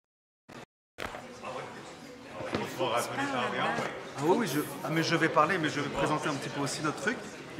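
A man talks casually nearby in a room.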